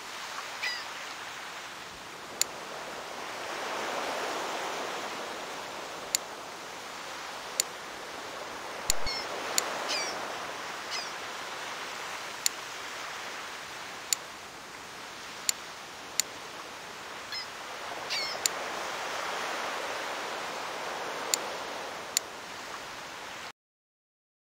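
Sea waves wash and swell in gentle surges.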